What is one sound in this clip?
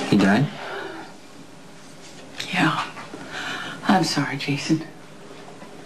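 A woman speaks in a worried, urgent voice close by.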